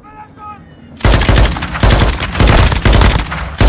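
A rifle fires in rapid loud bursts.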